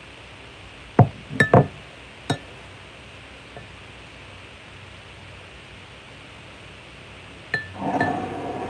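A metal tube knocks and clinks against a glass jar.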